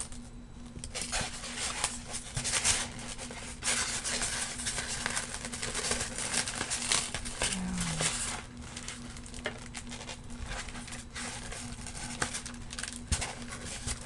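A plastic wrapper crinkles close by.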